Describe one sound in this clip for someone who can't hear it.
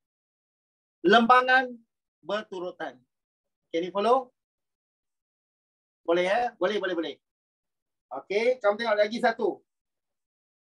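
A middle-aged man speaks with animation in short bursts, close to a microphone as in an online call.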